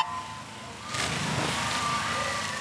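Swimmers dive in and splash through the water.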